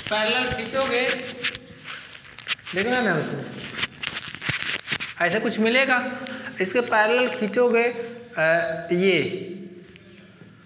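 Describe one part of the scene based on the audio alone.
A young man speaks close by, explaining in a calm, steady voice.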